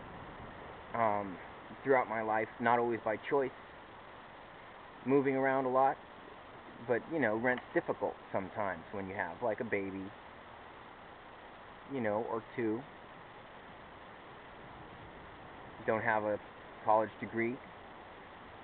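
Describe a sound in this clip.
A young man talks close to a phone microphone in short bursts with pauses.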